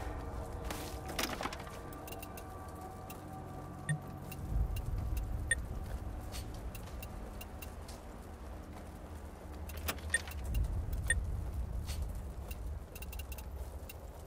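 Soft clicks sound as items are picked up.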